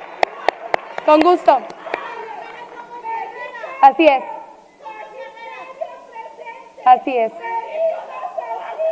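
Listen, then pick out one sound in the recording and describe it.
A young woman speaks through a microphone with animation in a large echoing hall.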